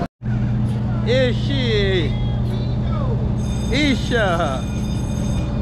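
Children on a swinging ride shriek with excitement.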